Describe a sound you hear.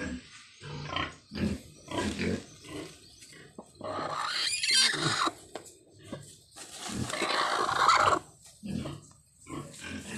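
A hen squawks loudly close by.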